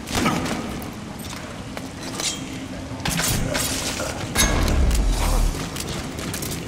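A body thuds onto the floor.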